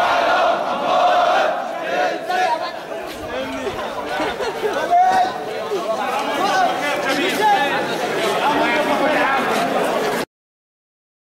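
A crowd of men chants and shouts loudly outdoors.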